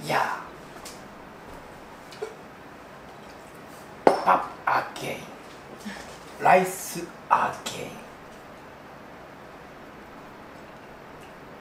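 Ceramic dishes clink against each other.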